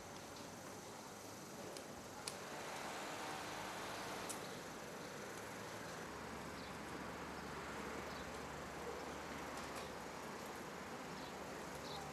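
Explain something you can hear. Footsteps tap on pavement outdoors.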